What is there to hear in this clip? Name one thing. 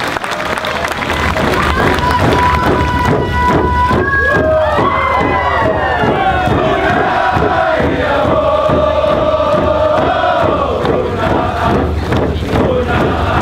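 Hand drums beat in a steady rhythm.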